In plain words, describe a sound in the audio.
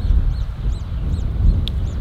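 Leaves rustle as a plant is picked by hand.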